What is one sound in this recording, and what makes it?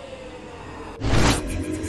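A loud whooshing blast flares up.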